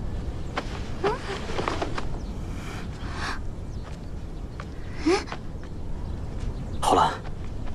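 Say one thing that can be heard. A young woman sobs and cries out in distress nearby.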